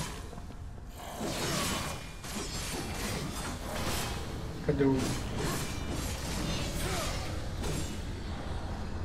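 A sword slashes and strikes in quick, clashing blows.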